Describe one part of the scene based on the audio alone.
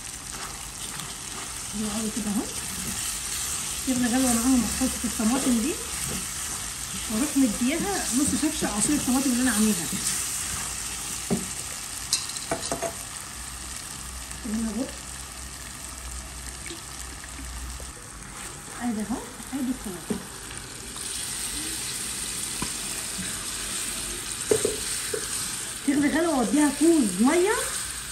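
A spatula scrapes and stirs food in a sizzling pan.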